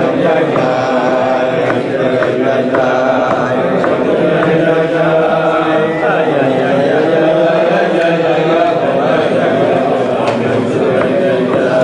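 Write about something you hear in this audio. An elderly man speaks nearby.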